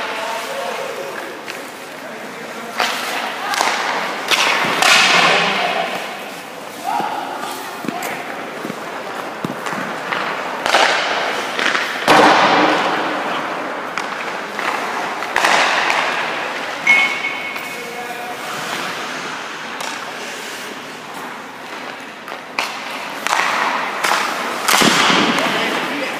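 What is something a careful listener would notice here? Sounds echo in a large indoor rink.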